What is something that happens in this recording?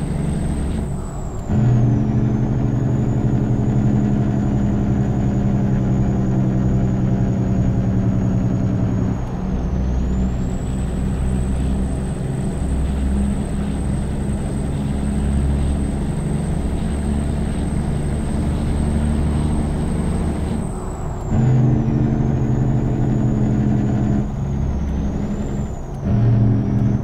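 A diesel semi truck engine drops in pitch briefly during gear changes.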